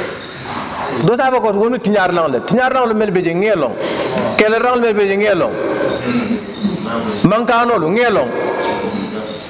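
A man speaks into a microphone with animation, heard through a loudspeaker in an echoing room.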